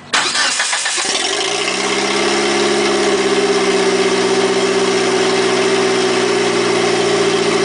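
A car engine idles with a steady, loud rumble.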